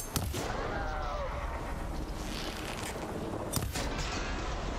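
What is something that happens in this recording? Sharp impacts crack.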